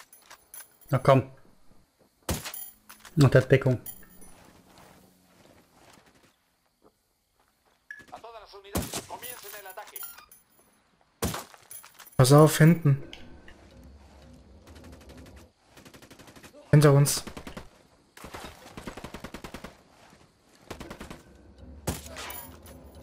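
Silenced rifle shots crack one at a time.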